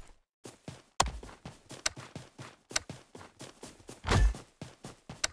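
A menu button clicks.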